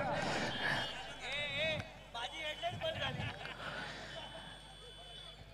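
A crowd murmurs far off.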